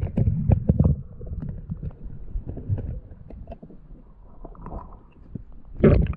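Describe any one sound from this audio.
A hand scrapes and knocks against stones underwater.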